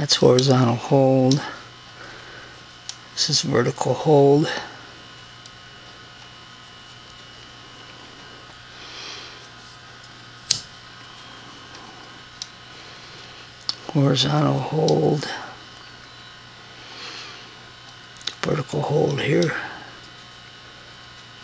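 An old valve television set hums and whines steadily.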